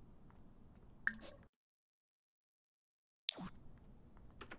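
Soft game interface clicks and chimes sound.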